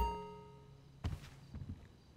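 Footsteps thud across a floor.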